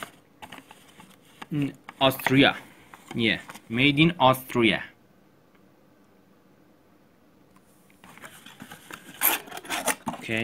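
A cardboard box rustles and scrapes as hands handle it.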